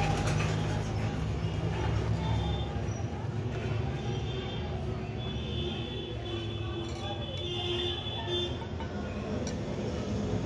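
A screwdriver scrapes and pries against metal.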